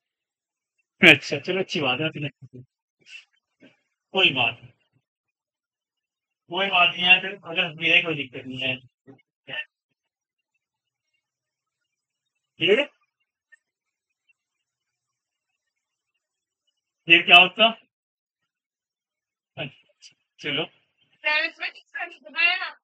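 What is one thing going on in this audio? A young man speaks calmly in short phrases, with long pauses.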